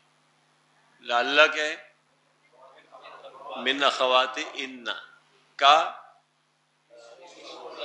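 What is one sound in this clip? An elderly man speaks calmly through a clip-on microphone, in short phrases with pauses.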